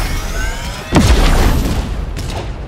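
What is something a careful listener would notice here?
A pickaxe strikes with a heavy thud.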